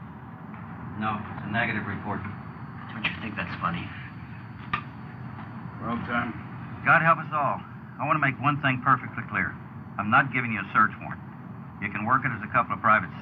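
An elderly man speaks calmly and firmly, close by.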